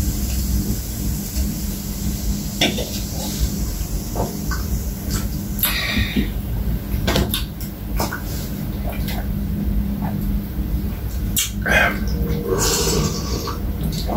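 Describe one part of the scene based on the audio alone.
A young man gulps a drink loudly.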